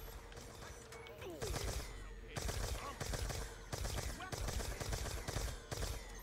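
A zombie growls and snarls.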